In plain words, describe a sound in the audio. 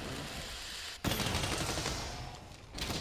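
An explosion bursts with a roar.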